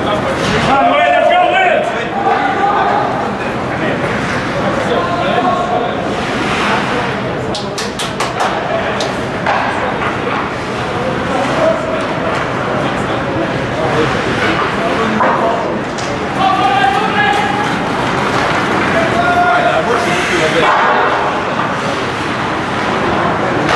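Skates scrape and hiss across the ice in a large echoing arena.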